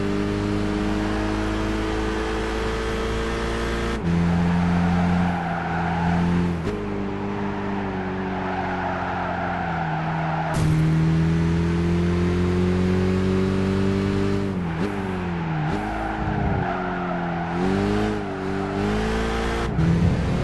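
A racing car engine roars steadily, its pitch rising and dropping with each gear change.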